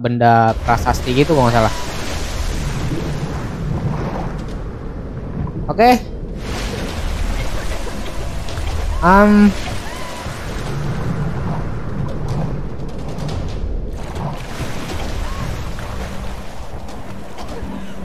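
Water crashes and splashes heavily.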